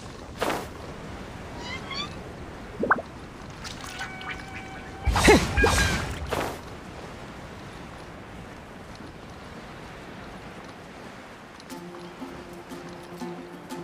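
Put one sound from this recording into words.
Wind rushes steadily past a gliding figure.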